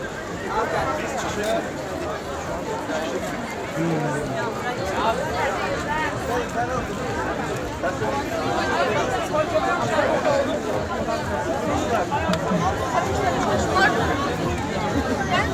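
A large crowd chatters loudly all around outdoors.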